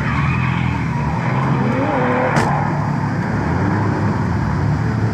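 Racing car engines roar and rev in the distance.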